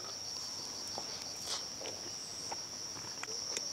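A young man chews food close to a microphone.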